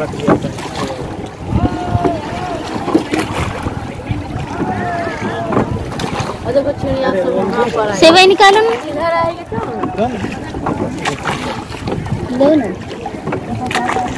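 Gulls cry over the water.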